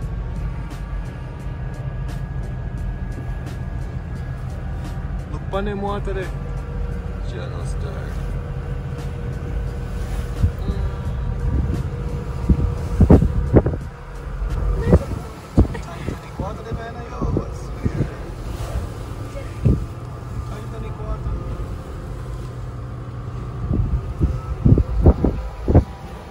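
Wind buffets the car outside.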